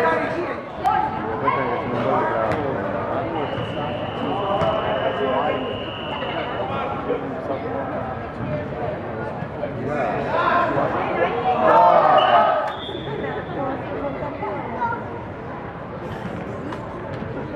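A soccer ball thuds as it is kicked.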